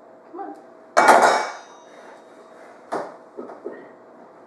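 A metal mixing bowl clanks as it is lifted.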